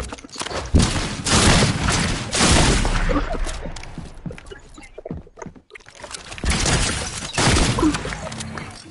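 Game building sounds clatter in quick bursts.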